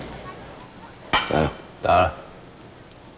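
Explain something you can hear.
Glasses clink together.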